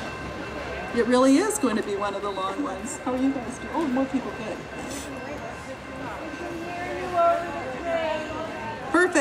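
A woman speaks with animation through a loudspeaker outdoors.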